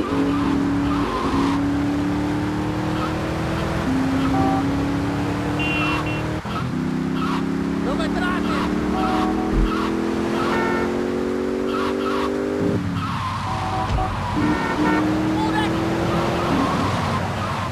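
A sports car engine roars and revs up through its gears.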